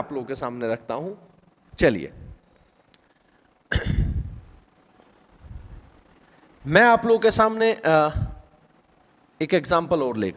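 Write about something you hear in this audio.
A man speaks calmly and clearly, as if explaining, close to a microphone.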